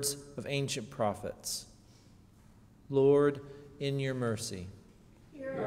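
A young man reads aloud calmly into a microphone in a room with a slight echo.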